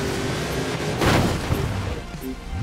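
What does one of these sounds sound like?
A loud crash thuds as a vehicle hits something.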